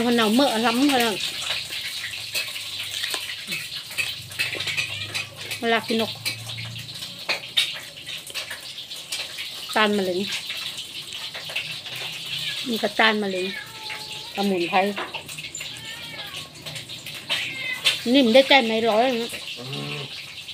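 A middle-aged woman speaks close to a microphone, in short animated phrases.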